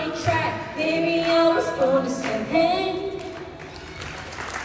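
A young woman speaks with animation into a microphone over loudspeakers.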